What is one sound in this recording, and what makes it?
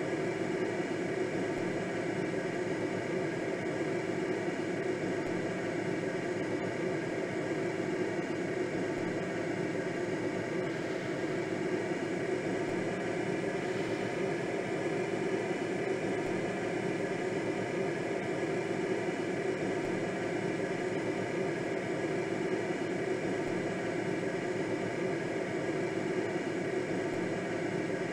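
Wind rushes steadily past a gliding aircraft.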